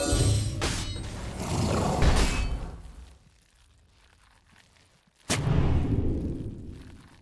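Magic spells burst and whoosh in a video game.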